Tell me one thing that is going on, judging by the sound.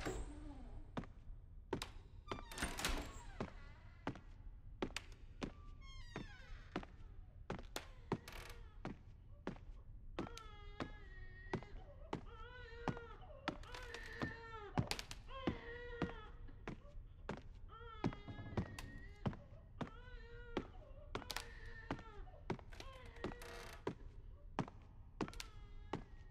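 Footsteps thud on a floor indoors.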